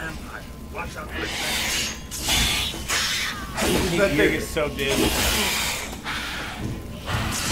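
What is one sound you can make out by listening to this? A sword clashes and slashes in a fight.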